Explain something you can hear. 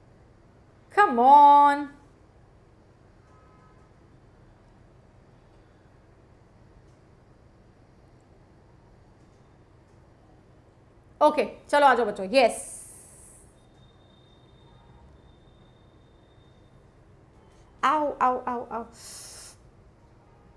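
A young woman speaks in short bursts through a close microphone, with long pauses between.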